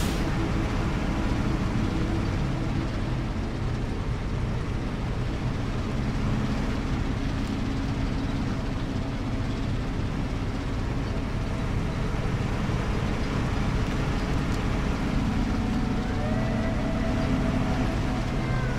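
A truck engine rumbles and strains steadily.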